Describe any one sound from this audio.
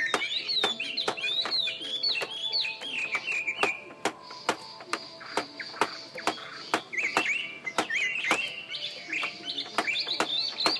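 A caged bird sings in quick, bright chirping phrases close by.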